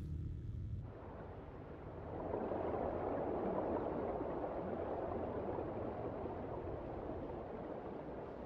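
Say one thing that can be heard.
Water bubbles and churns, heard muffled as if from underwater.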